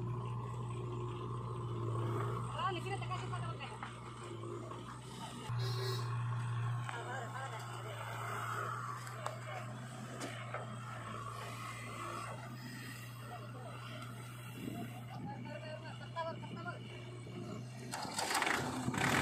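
A tractor engine rumbles steadily at idle.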